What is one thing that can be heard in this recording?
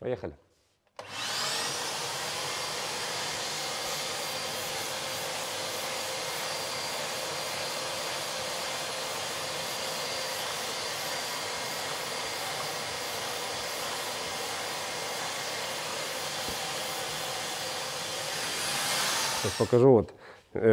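An electric sander whirs steadily against a car body.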